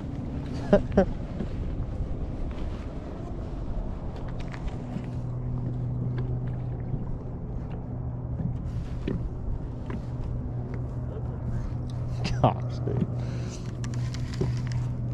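Water laps gently against the side of a boat.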